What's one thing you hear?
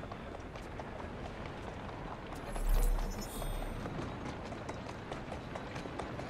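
A horse-drawn carriage rolls along a street.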